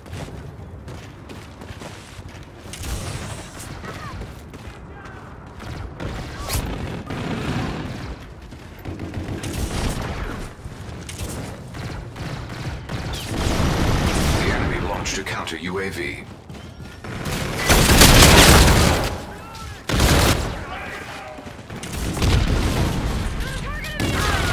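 Gunfire from a video game rattles in bursts.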